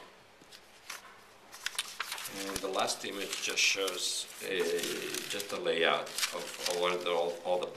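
Paper rustles and crinkles as sheets are lifted and turned over.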